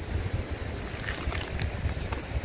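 A plastic snack bag crinkles as it is handled.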